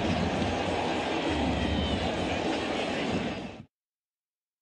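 A large crowd cheers and murmurs in a stadium.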